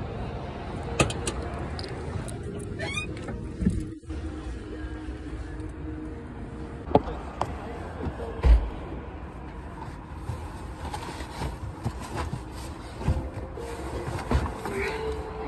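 Handling knocks and bumps sound close by.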